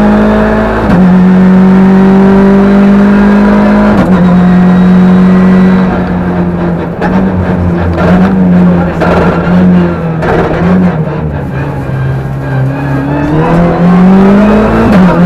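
A car engine roars loudly at high revs, close up.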